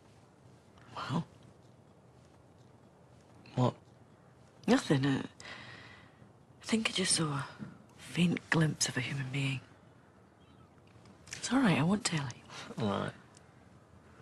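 A young woman speaks softly, close by, with emotion in her voice.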